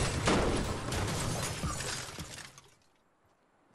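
A pickaxe strikes and breaks apart a large object with a loud crash.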